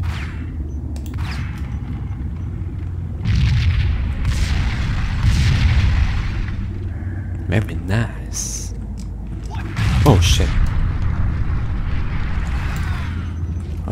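Pistol shots fire in quick bursts, echoing in a hard-walled space.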